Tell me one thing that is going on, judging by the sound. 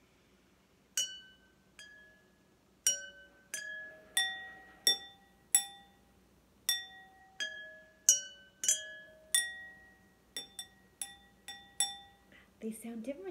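A stick taps water-filled glasses, ringing out clear pitched notes.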